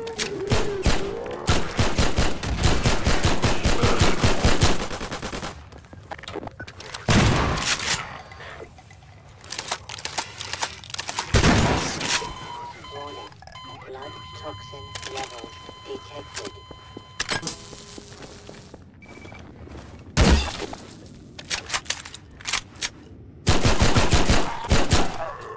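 Gunshots fire in quick bursts, ringing off hard walls.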